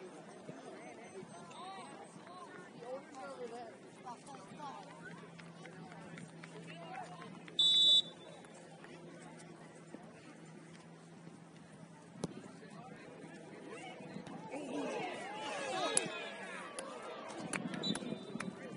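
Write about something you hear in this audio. Young players shout to each other in the distance across an open field.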